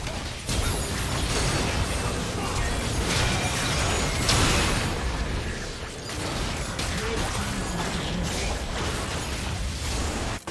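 Magic blasts and explosions burst and whoosh in quick succession during a fight.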